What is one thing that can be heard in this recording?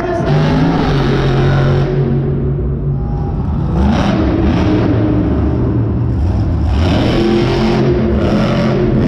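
A monster truck engine roars loudly, revving up and down.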